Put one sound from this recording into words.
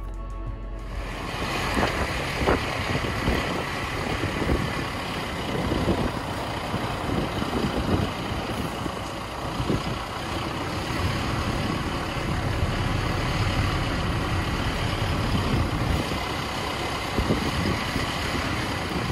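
A vehicle engine hums steadily.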